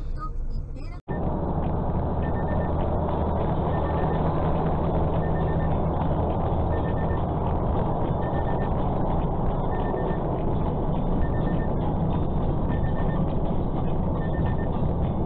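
A vehicle engine hums steadily with tyre roar on a road.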